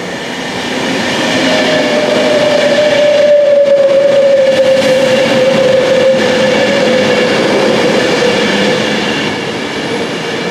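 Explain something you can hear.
A train's wheels squeal on the rails with a long high whine.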